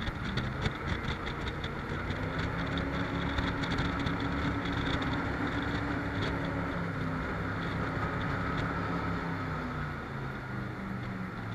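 A boat engine roars steadily at speed.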